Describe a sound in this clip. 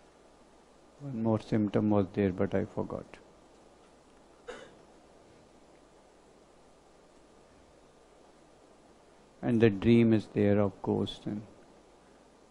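An older man speaks calmly into a close microphone, in short bursts with pauses.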